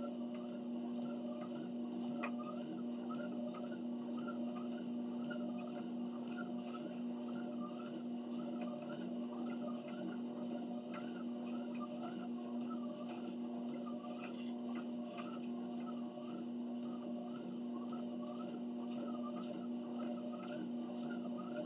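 Footsteps thud in a steady rhythm on a treadmill belt.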